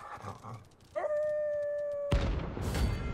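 A beast lets out a long, steady howl.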